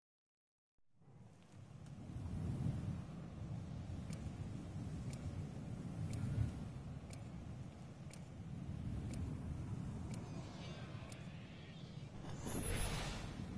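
Wind blows softly outdoors.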